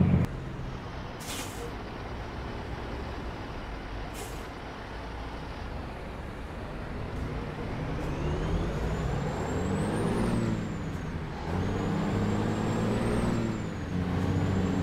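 Road noise hums steadily under a rolling truck.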